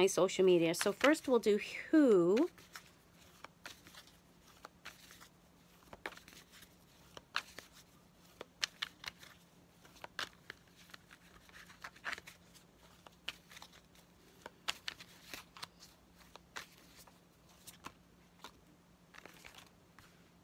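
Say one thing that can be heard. Playing cards riffle and flick softly as they are shuffled close by.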